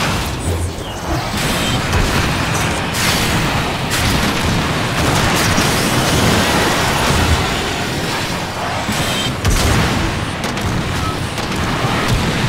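Guns fire in rapid crackling bursts.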